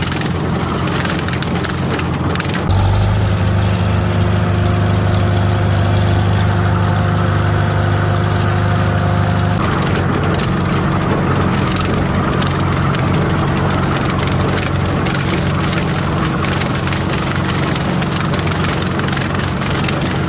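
A mower rattles and chops through dry stalks.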